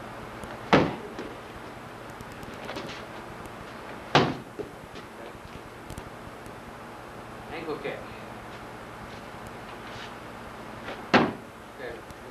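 Kicks thud hard against a striking pad.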